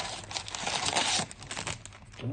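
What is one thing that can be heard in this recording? Cellophane wrapping crinkles and tears.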